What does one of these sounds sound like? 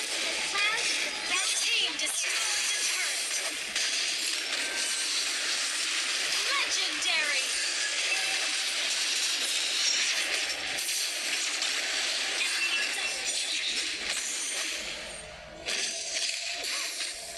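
Game spell blasts and hits crackle and whoosh in rapid bursts.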